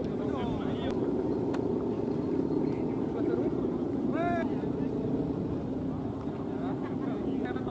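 A crowd of men chatter and call out loudly outdoors.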